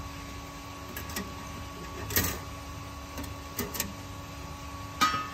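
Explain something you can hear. A wire basket rattles and clinks against a metal tank.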